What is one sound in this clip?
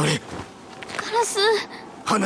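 A young girl says something softly in a worried voice.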